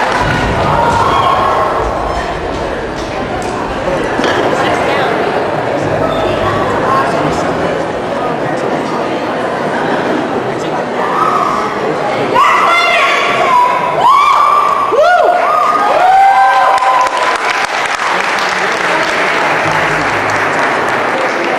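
A large audience cheers and claps in a big echoing hall.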